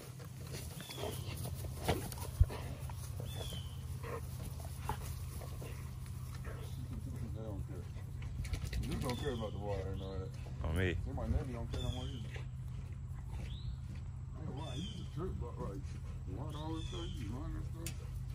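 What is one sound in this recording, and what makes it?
Two dogs growl and snarl playfully as they wrestle.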